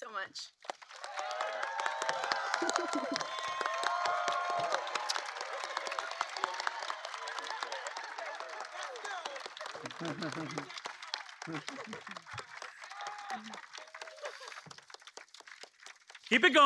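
A crowd claps and cheers outdoors.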